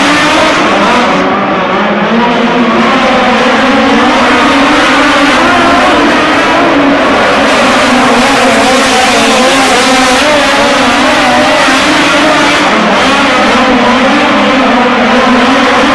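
Racing car engines roar loudly as they speed around a dirt track.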